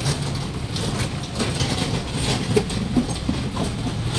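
A handcart's wheels rattle past.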